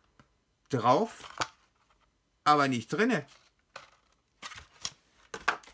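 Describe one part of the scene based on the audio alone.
A paper wrapper crinkles and rustles.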